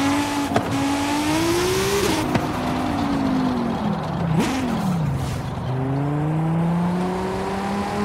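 Tyres screech as a car slides through a corner.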